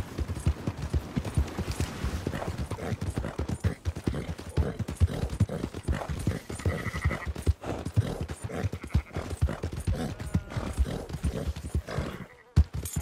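Horse hooves clop rapidly on a dirt track.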